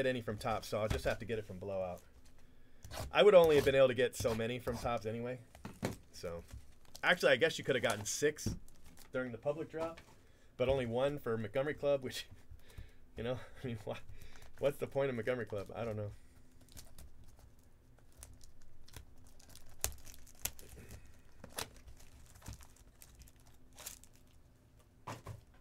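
Plastic wrap crinkles and rustles as hands handle a boxed package.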